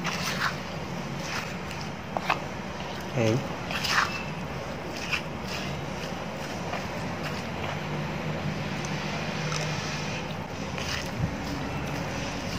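A pestle pounds and squishes wet food in a mortar.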